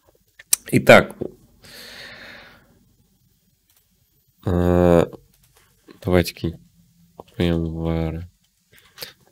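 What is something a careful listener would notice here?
A young man speaks close to a microphone in short bursts.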